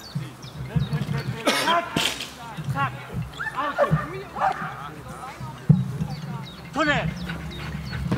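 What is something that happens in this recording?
A man calls out short, loud commands to a dog outdoors.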